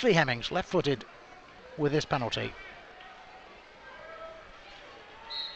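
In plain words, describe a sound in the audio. A large crowd murmurs in an open stadium.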